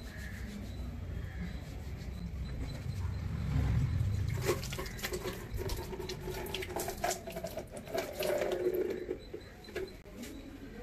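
Water runs from a tap and splashes.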